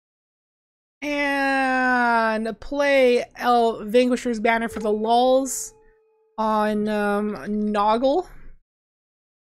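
A young woman talks into a microphone in a drawn-out, sing-song voice.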